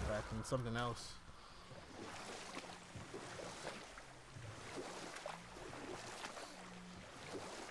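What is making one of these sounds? Water splashes and laps against a rowing boat.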